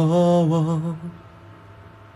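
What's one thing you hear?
A young man sings briefly, close to a phone microphone.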